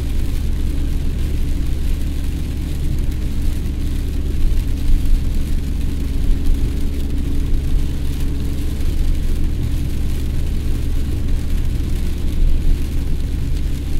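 Windshield wipers swish across the glass.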